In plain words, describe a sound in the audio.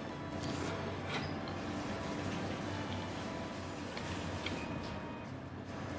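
Cutlery scrapes against a plate.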